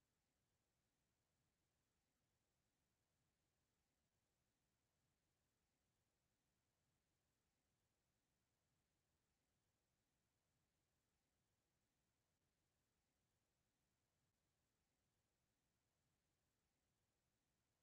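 A clock ticks softly and steadily.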